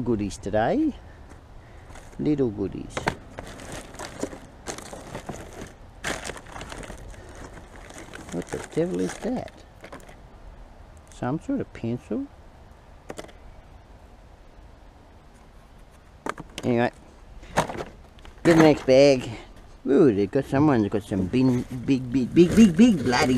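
Plastic wrappers and paper rustle and crinkle as hands rummage through rubbish.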